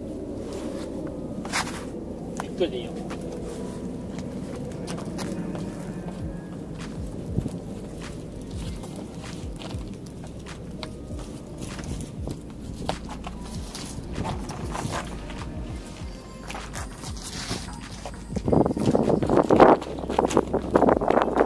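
Sneakers scrape and scuff on bare rock.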